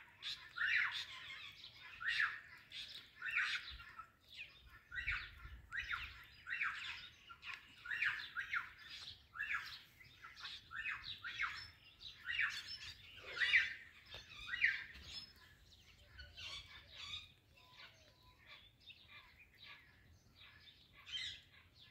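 Ringneck parakeets squawk and chatter in harsh bursts.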